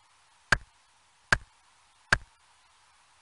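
An axe chops into wood with three sharp, evenly spaced thuds.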